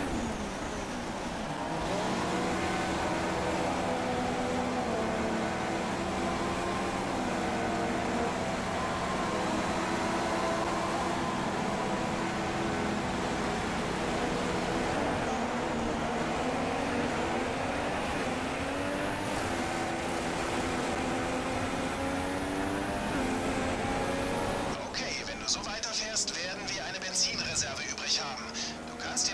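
A racing car engine hums and then revs up and down through the gears.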